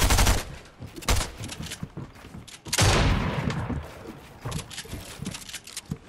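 Wooden walls are built with quick, hollow knocks and clatters.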